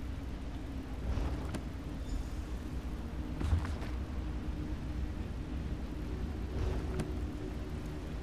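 Book pages rustle as a book opens and shuts.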